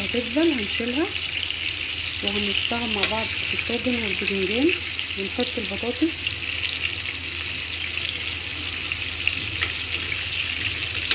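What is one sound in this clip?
Food sizzles steadily in a hot frying pan.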